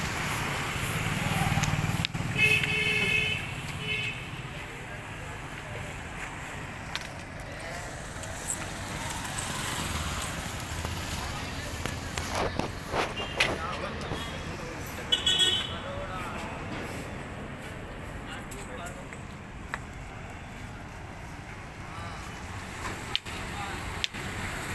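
Traffic rumbles along a street outdoors at night.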